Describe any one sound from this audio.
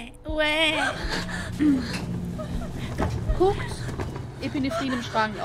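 A woman speaks in an anxious, strained voice.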